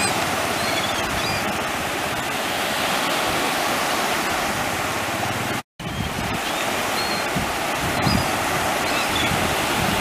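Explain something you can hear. Gulls call overhead.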